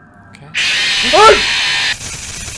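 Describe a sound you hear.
A young man screams in fright.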